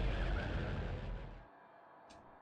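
A fire roars.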